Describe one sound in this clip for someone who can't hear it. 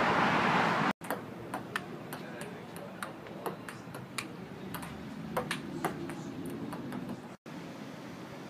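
A table tennis ball clicks back and forth on paddles and a table.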